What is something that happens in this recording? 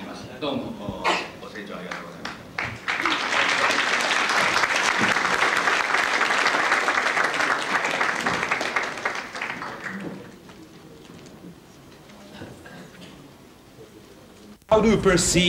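A large crowd murmurs quietly.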